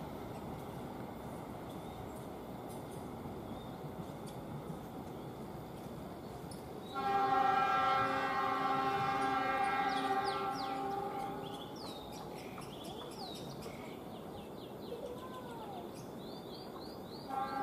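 A train rumbles slowly away along the tracks.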